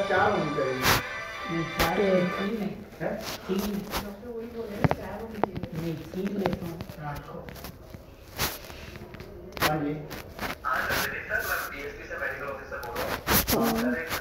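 A cartoon dog speaks.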